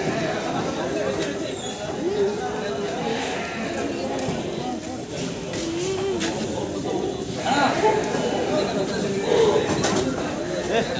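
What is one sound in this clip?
A crowd of men chatters all around.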